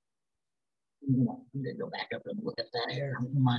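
A man speaks calmly into a microphone on an online call.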